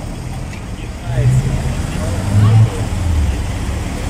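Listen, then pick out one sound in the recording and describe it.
A car engine revs deeply as the car pulls away.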